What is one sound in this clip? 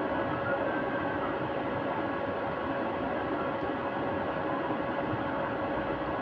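Music from a video game plays steadily.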